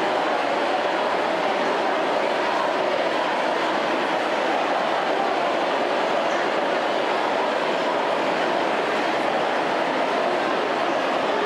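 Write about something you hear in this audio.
A large crowd chants and cheers loudly in a big echoing hall.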